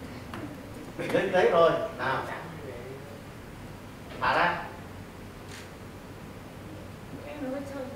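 A middle-aged man talks to a group in a room.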